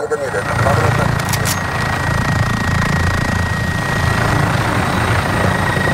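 A helicopter engine drones and its rotor thumps.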